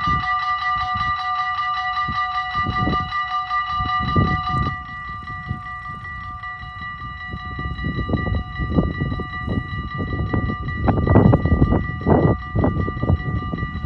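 A level crossing bell rings rapidly and steadily, becoming softer partway through.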